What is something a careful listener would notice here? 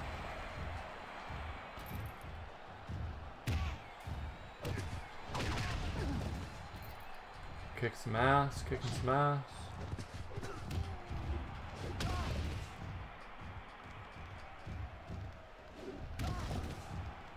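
Bodies thud hard onto a wrestling ring mat.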